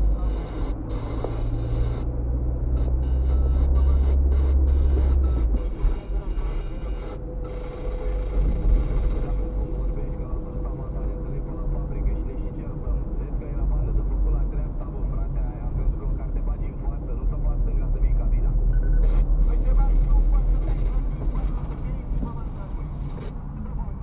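Tyres roll on the road beneath the car.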